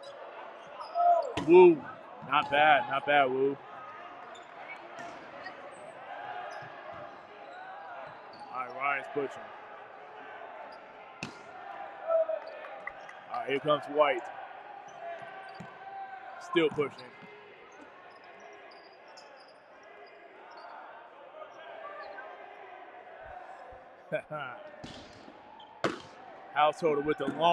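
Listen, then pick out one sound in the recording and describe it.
Young players shout loudly on the court.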